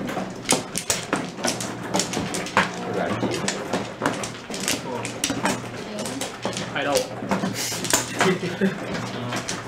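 Plastic tiles clack and knock sharply on a table.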